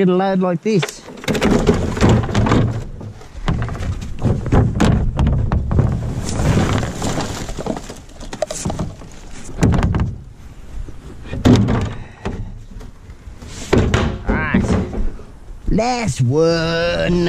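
A plastic wheelie bin rattles and bumps as it is wheeled and tipped.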